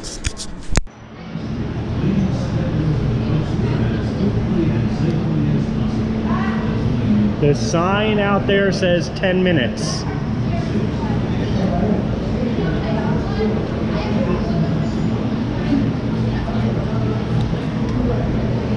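Ceiling fans hum steadily in a large open space.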